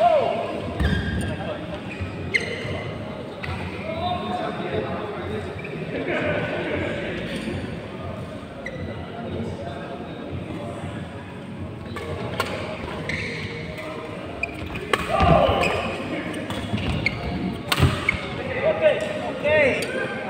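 Young men talk and call out across the hall.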